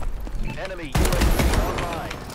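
A gun fires loudly in a burst of shots.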